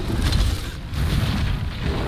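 A fiery blast bursts with a loud roar.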